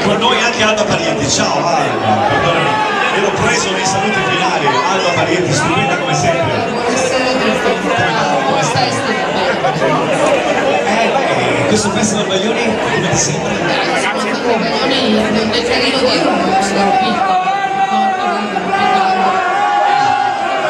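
A crowd chatters and cheers loudly outdoors.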